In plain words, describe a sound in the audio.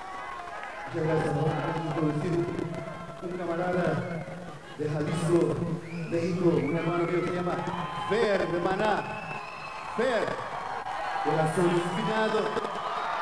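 A man speaks into a microphone through loudspeakers, with a strong echo.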